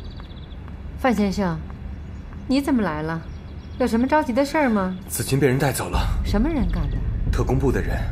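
A middle-aged woman speaks.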